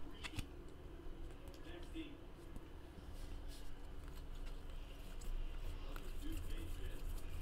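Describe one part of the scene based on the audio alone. Plastic-coated trading cards flick and rustle against each other as they are shuffled by hand.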